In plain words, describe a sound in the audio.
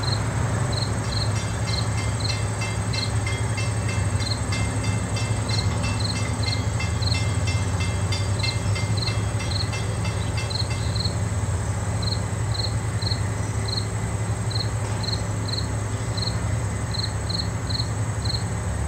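Wind blows steadily through trees and tall grass outdoors.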